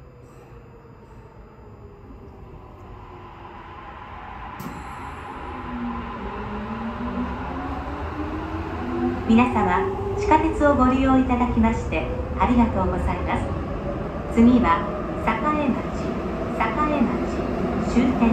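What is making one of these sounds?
Train wheels rumble and clatter over the rails, growing louder.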